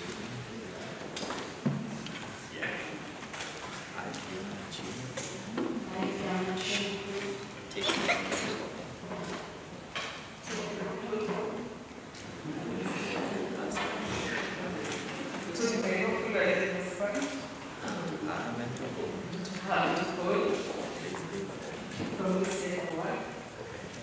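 A man reads out calmly through a microphone.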